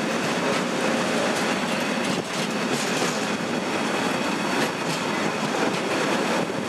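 A freight train rumbles past close by, its wheels clattering rhythmically over the rail joints.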